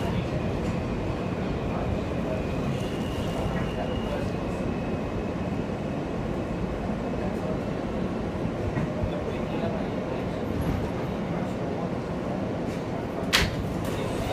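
A subway train rumbles through a tunnel.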